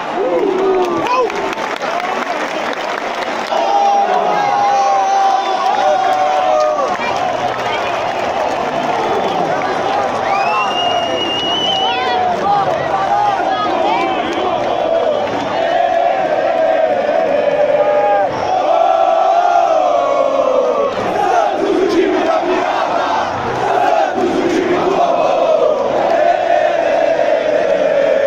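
A large stadium crowd sings and chants loudly in unison.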